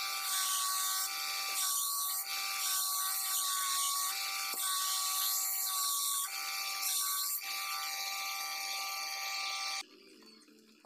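A belt grinder whirs steadily as a knife blade is ground against it.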